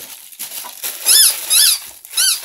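A dog whines in high yelps.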